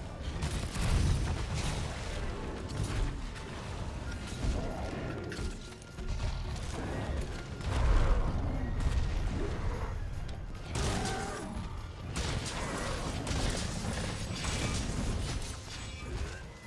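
A blade strikes with heavy thuds.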